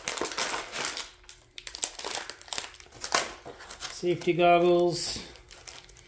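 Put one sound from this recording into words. A plastic bag of small parts rustles.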